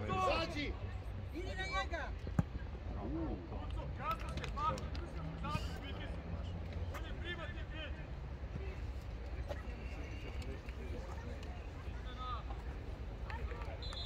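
Young players shout to each other from across an open field.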